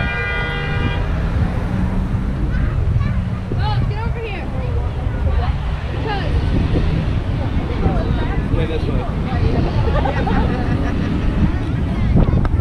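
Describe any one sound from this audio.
A crowd of men and women cheers and shouts nearby.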